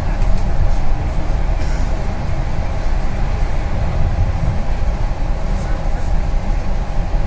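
A bus engine rumbles steadily while driving along a road.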